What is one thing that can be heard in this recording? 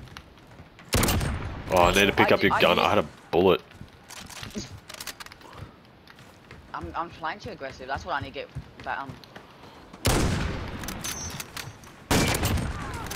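A sniper rifle fires loud single shots.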